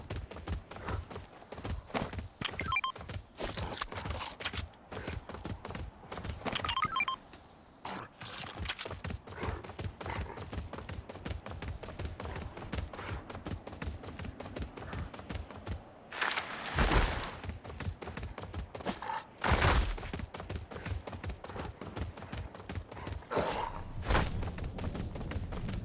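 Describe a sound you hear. Heavy paws thud rapidly on snow and rock as an animal gallops.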